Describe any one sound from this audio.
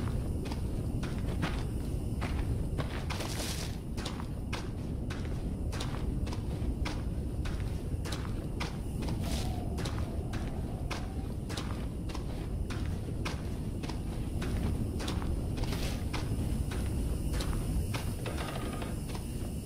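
Footsteps tread at a steady pace on a hard floor.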